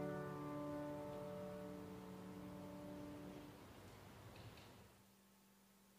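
A piano chord rings out and slowly fades away.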